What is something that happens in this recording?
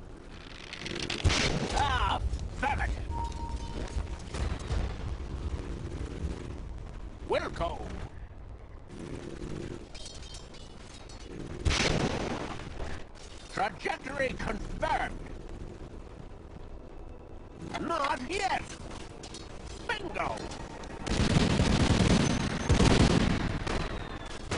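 Game sound effects clash and whoosh during a fight.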